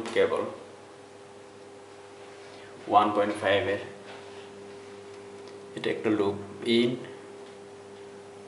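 An electrical transformer hums steadily and quietly.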